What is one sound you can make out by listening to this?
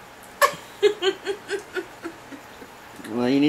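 A middle-aged woman laughs in short bursts close by.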